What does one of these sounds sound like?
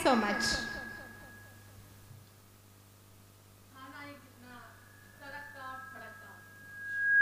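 A woman speaks into a microphone, heard through loudspeakers.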